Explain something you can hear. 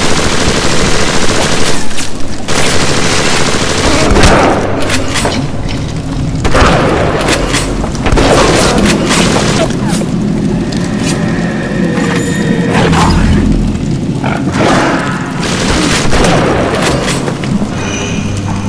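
A burst of flame whooshes.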